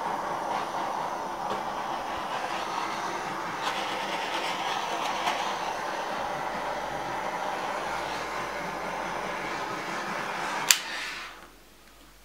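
A heat gun blows with a steady whooshing roar.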